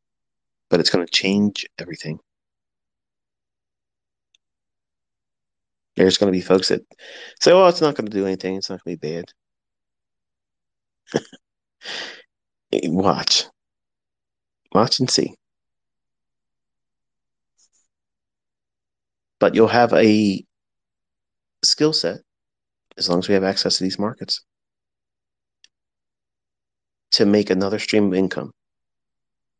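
A man speaks calmly and close up, in short bursts with long pauses.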